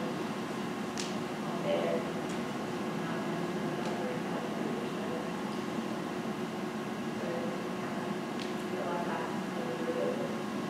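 A woman speaks calmly in a large echoing hall.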